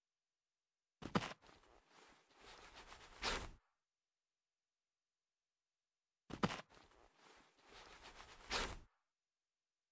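Short game sound effects play in bursts.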